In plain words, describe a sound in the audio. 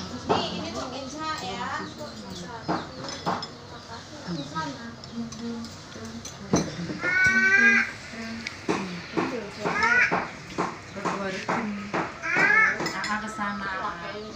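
A young child talks in a high voice close by.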